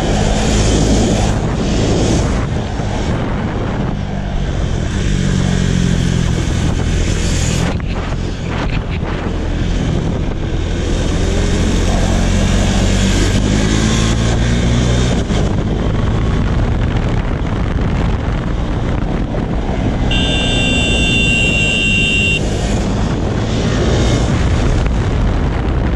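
Wind rushes over a motorcycle rider at speed.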